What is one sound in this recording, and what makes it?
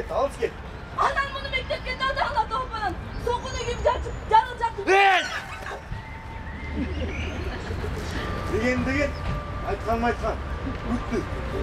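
A man speaks loudly and dramatically outdoors.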